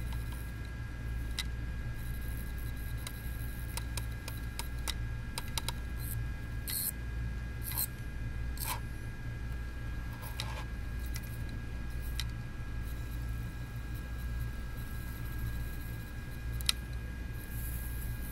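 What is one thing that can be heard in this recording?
A small screwdriver clicks and scrapes against metal.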